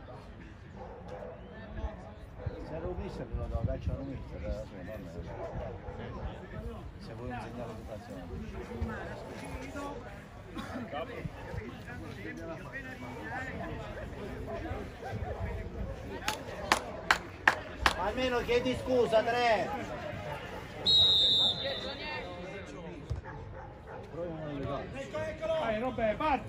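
Spectators talk nearby.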